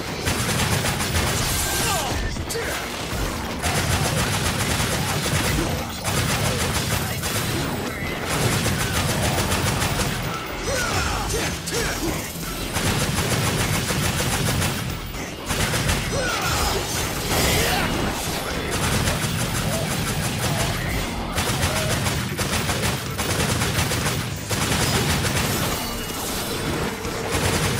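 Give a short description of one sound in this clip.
Swords slash and clash in quick bursts.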